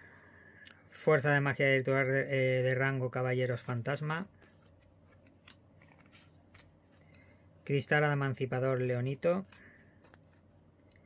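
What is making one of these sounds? Playing cards slide and rustle softly in hands.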